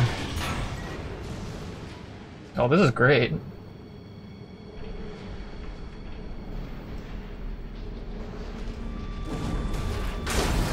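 A robot's jet thrusters roar.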